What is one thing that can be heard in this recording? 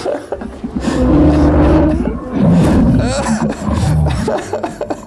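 A dinosaur roars with a deep rumble.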